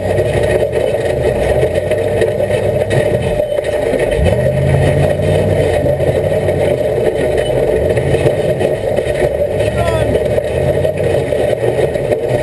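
An engine rumbles and revs as a vehicle crawls over rocks.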